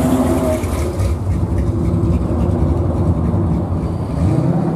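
A muscle car's engine rumbles low as it rolls slowly up close by.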